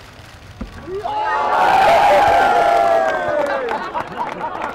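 A crowd outdoors cheers and applauds.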